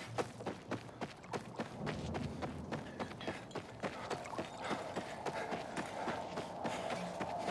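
Quick footsteps run over stone paving.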